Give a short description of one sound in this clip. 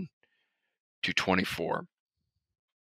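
Another man speaks briefly over an online call.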